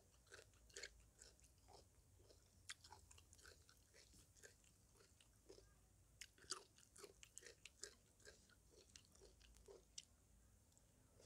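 A woman's fingers squish and rustle soft noodles close up.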